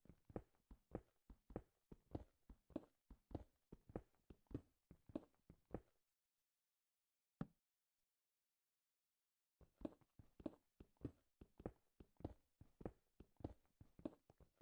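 A pickaxe strikes stone in steady, repeated blows.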